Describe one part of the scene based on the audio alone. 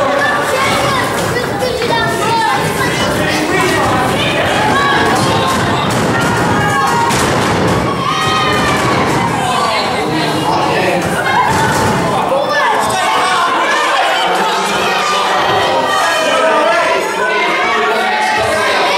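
A crowd of children and adults chatters and shouts in an echoing hall.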